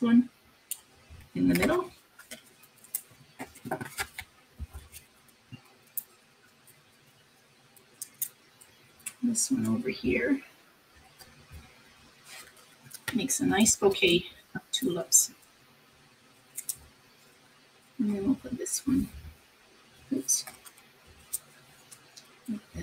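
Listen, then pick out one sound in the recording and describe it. Paper pieces rustle and tap softly as they are handled.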